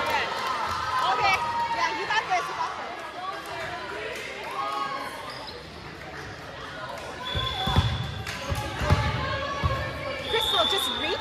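Girls and young women shout and cheer throughout, echoing in a large hall.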